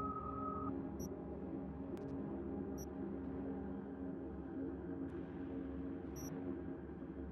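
Soft electronic beeps chirp now and then.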